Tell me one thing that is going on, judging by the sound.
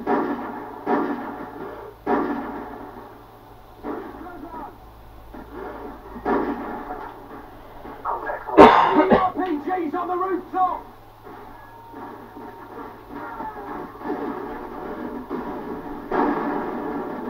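Rifle shots ring out from a video game played through a television speaker.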